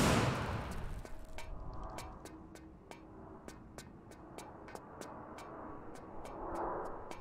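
Quick footsteps run over a hard floor.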